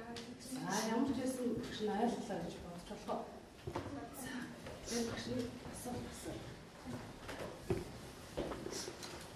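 A woman speaks with animation nearby.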